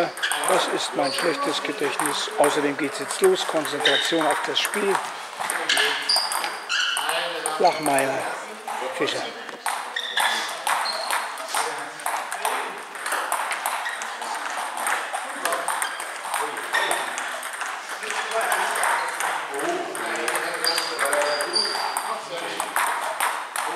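Ping-pong balls click sharply off paddles and tables in a large echoing hall.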